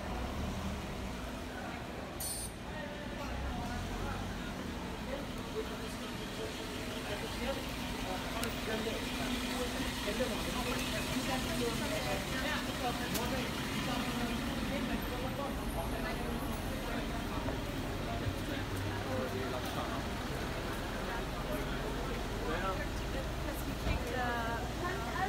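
Men and women chatter nearby in a busy street.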